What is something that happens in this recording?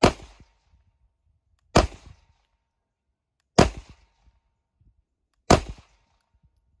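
A handgun fires loud single shots outdoors at a steady pace.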